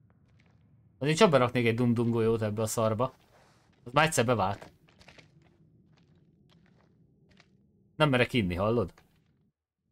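A man speaks with animation into a close microphone.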